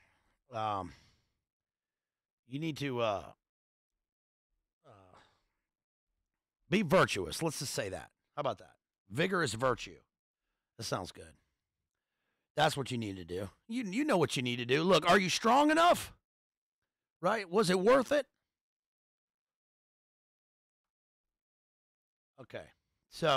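A man speaks calmly and close into a microphone, with pauses.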